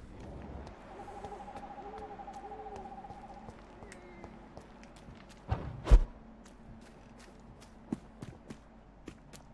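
Footsteps tread steadily along a path.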